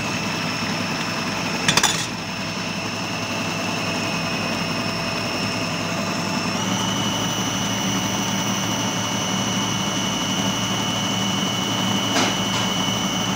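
A food processor motor whirs steadily, its pitch rising slightly partway through.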